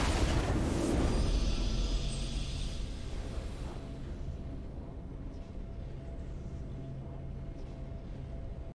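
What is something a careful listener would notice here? A triumphant game fanfare swells and then fades into a low, steady drone.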